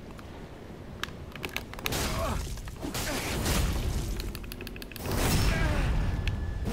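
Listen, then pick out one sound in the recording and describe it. Swords clang and clash in a fight.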